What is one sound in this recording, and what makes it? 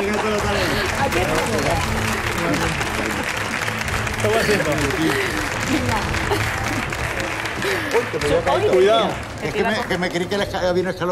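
A woman talks and laughs with animation through a microphone.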